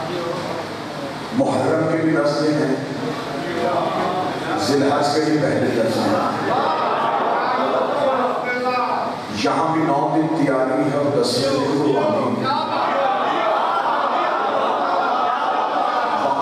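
A man speaks with passion into a microphone, heard through loudspeakers in a reverberant hall.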